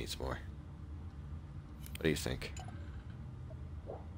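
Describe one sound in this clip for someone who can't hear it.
A ceramic mug clinks as it is lifted from a wooden table.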